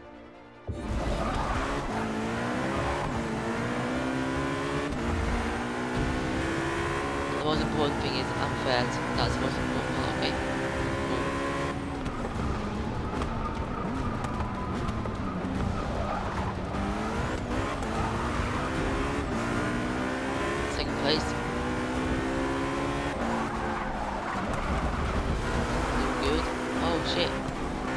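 Tyres squeal briefly on the track.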